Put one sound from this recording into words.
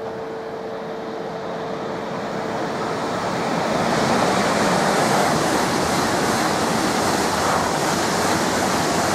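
A train approaches and rushes past at speed with a loud roar of wheels on rails.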